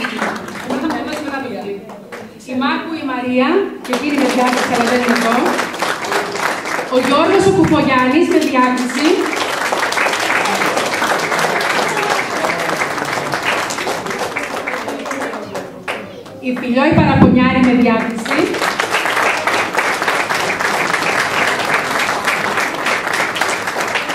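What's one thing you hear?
Young children chatter and laugh in the background.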